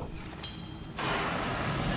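A fire extinguisher sprays with a loud hiss.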